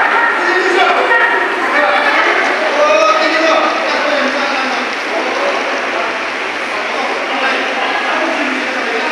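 A group of women sings together in an echoing hall.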